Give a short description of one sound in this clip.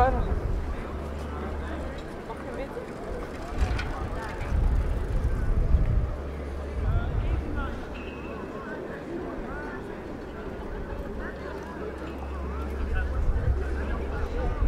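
A crowd of people murmurs faintly in the distance.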